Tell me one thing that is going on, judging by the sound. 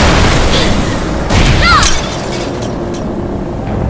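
Magical blasts crackle and whoosh in a fight.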